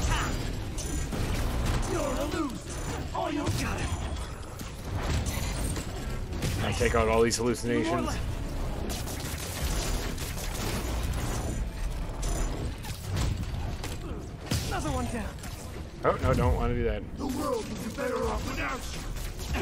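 Heavy crates and metal debris crash and thud during a fight.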